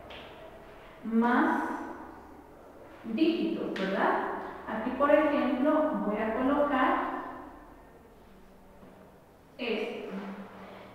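A young woman speaks calmly and clearly nearby, as if explaining.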